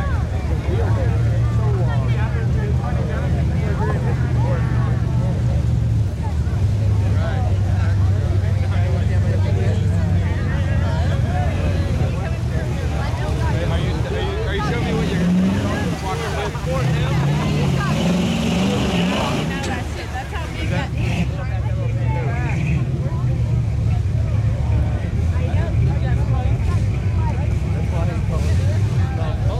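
A truck engine roars and revs loudly.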